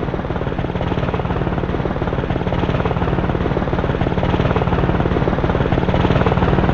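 A helicopter's engine hums steadily.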